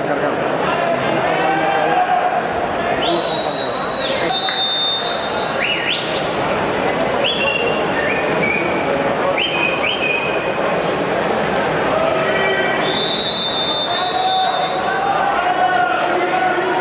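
A crowd cheers and shouts in a large echoing hall.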